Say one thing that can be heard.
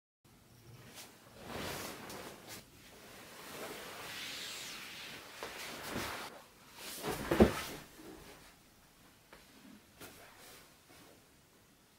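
Fabric rustles as pillows are moved and patted on a bed.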